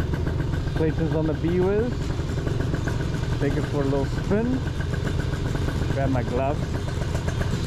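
A motorcycle engine revs up briefly a few times.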